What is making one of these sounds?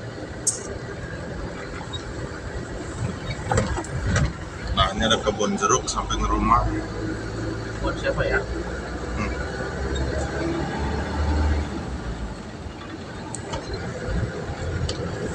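Tyres roll over a rough paved road.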